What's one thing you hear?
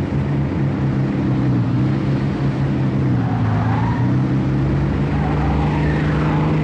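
A sports car engine hums steadily and shifts in pitch as the car drives.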